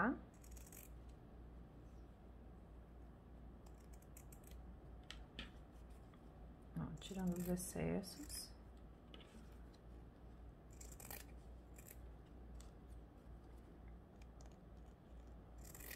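Scissors snip through thick fabric close by.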